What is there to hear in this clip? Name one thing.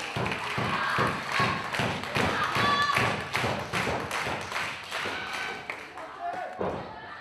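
An audience claps in rhythm in a hall.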